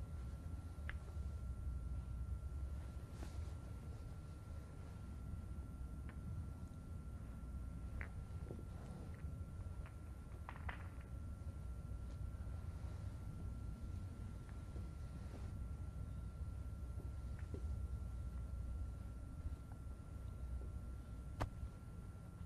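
Snooker balls click softly as they are set down on the table one by one.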